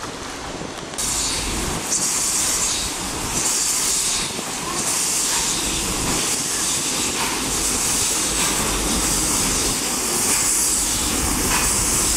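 A steam locomotive puffs and hisses close by as it rolls past.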